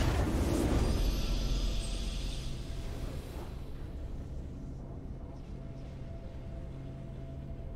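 A triumphant fanfare plays.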